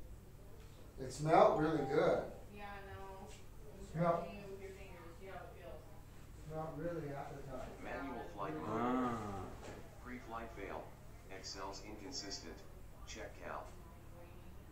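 A young man talks calmly close by.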